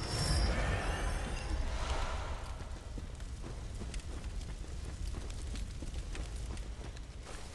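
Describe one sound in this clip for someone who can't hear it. Footsteps crunch quickly on rough ground.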